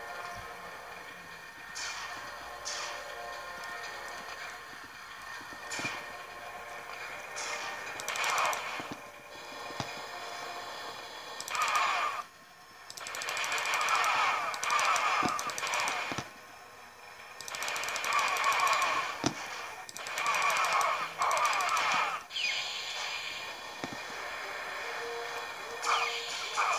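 Video game gunfire bursts and cracks through small laptop speakers.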